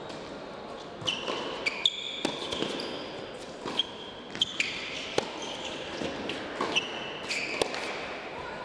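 A tennis ball bounces on the court.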